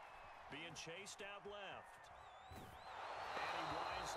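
A stadium crowd cheers loudly as a play unfolds.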